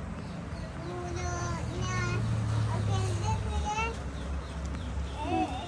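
A young girl talks in a high, lively voice close by.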